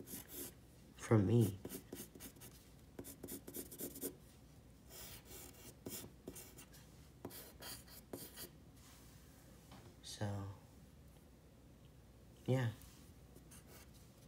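A pencil scratches and scrapes across paper.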